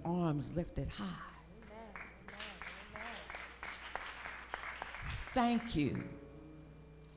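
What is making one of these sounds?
An elderly woman speaks with fervour into a microphone, heard through loudspeakers in a large echoing hall.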